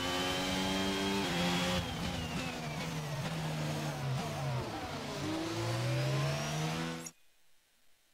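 A racing car engine whines loudly, dropping in pitch under braking and rising again as it speeds up.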